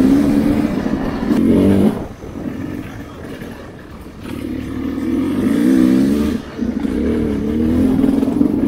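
Tyres crunch over a rough dirt trail.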